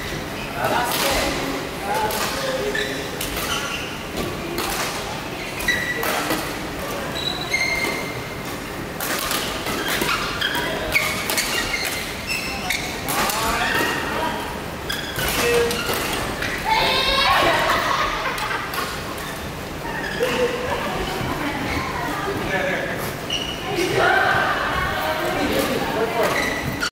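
Men call out and talk across the hall.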